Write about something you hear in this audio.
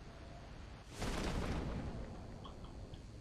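A parachute snaps open with a loud whoosh.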